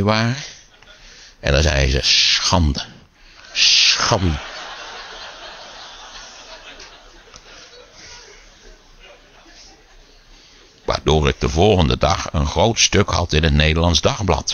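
An elderly man speaks animatedly into a microphone over loudspeakers, with long pauses.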